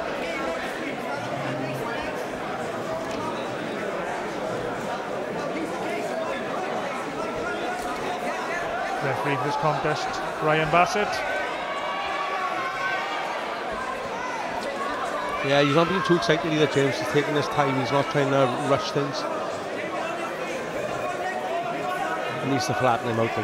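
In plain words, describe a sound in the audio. A crowd murmurs and chatters steadily in a large hall.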